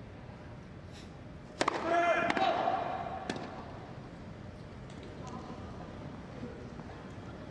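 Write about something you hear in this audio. A tennis racket strikes a ball back and forth.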